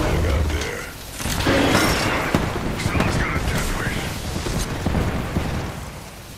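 Electric crackling buzzes loudly and steadily.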